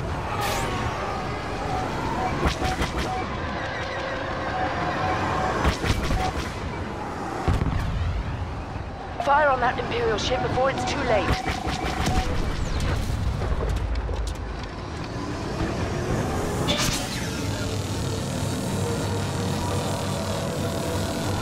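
A spacecraft engine roars steadily.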